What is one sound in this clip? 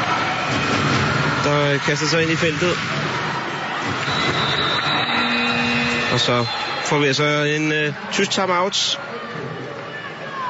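A large crowd cheers and chants steadily in an echoing hall.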